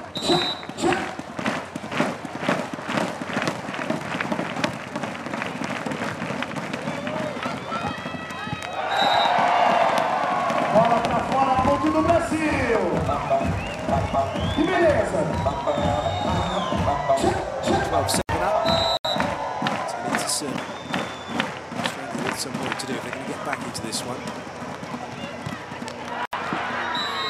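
A large crowd claps and bangs noisemakers in rhythm.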